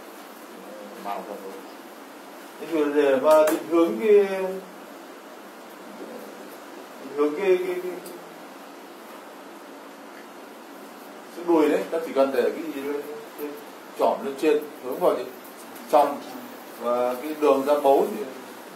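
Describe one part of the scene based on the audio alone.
A man speaks in short bursts, explaining calmly close by.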